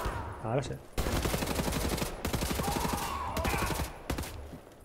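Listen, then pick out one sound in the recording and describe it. A rapid gunfire burst rattles.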